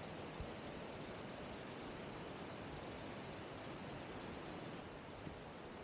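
Water rushes steadily over a low weir.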